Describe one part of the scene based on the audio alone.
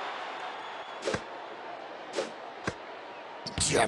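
A basketball is passed and bounces on a wooden court.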